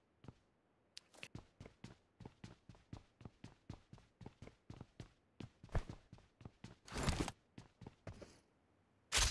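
Footsteps of a game character run across a wooden floor.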